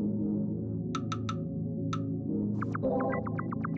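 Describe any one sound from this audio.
Short electronic blips sound as menu items are chosen.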